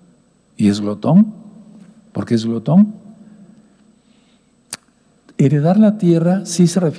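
An elderly man speaks with animation through a microphone, in bursts with pauses.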